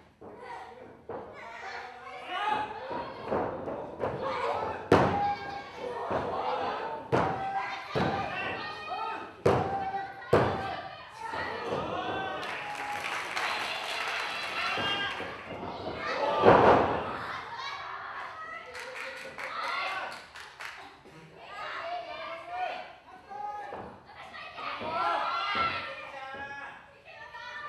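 Young women wrestlers shout and yell with effort.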